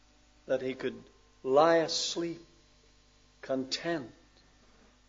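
An older man speaks into a microphone in short, deliberate phrases with pauses.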